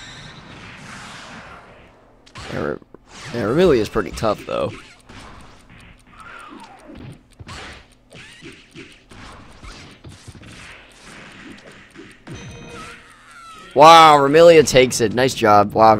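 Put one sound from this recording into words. Punches and kicks land with sharp smacks in a fighting game.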